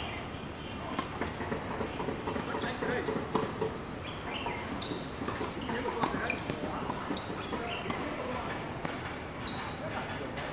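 Tennis rackets strike a ball back and forth in a doubles rally.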